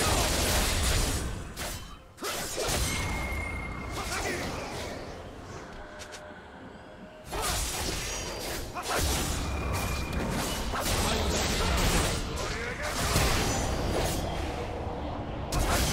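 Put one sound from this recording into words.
Fantasy combat effects whoosh, slash and crackle in quick bursts.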